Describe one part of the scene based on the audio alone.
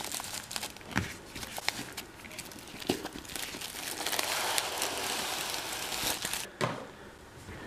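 A cardboard box knocks against a table.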